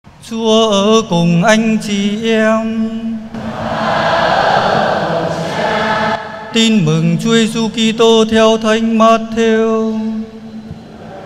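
A young man chants into a microphone in a large echoing hall.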